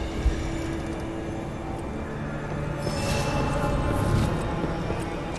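A shimmering magical chime rings out.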